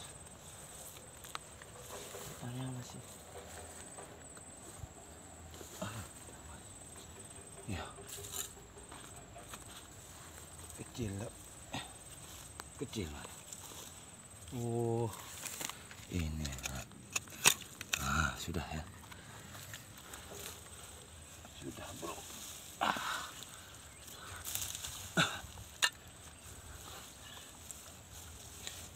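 Soil crumbles and roots tear as a person pulls up a plant.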